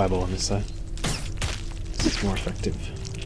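A weapon strikes a creature with a heavy thud.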